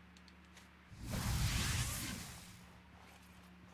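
A magical burst whooshes and crackles loudly.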